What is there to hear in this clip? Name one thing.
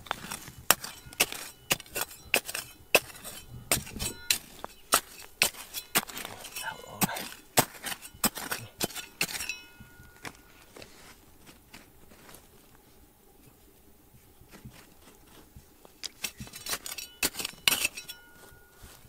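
A small metal trowel scrapes and knocks against stony soil.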